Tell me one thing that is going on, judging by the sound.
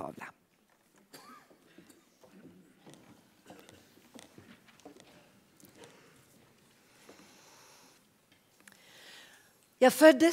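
Several performers speak quietly on a stage in a large hall.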